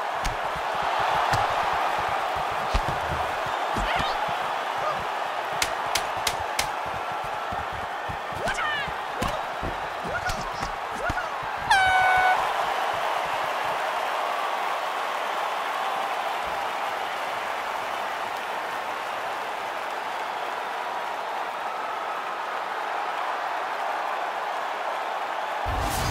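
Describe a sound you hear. A large crowd roars and murmurs steadily in a big arena.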